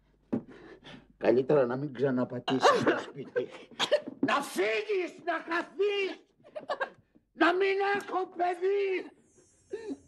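A young man groans in distress.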